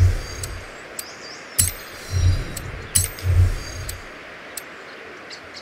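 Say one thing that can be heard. Menu selection clicks sound sharply.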